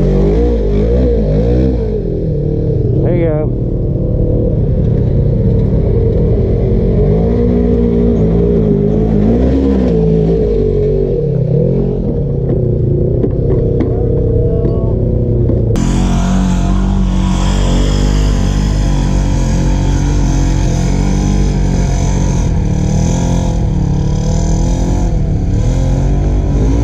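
An off-road vehicle's engine revs and roars, rising and falling in pitch as it climbs over rough ground.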